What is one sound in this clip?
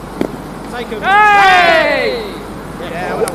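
A man on the field shouts a long, loud call in the distance.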